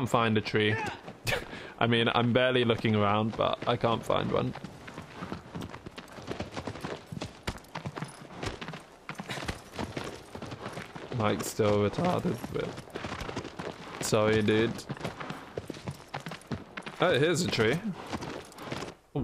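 A horse's hooves gallop steadily over the ground.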